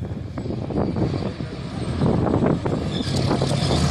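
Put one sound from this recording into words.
A heavy truck engine roars as it drives over rough ground.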